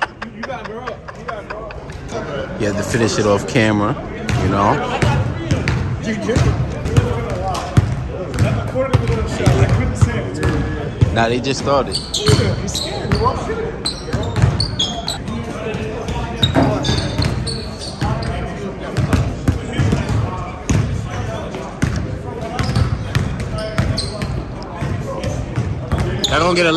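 Men talk and call out in a large echoing gym.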